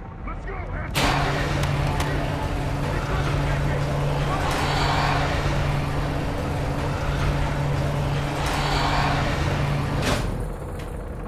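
A large metal door rolls open with a steady low rumble.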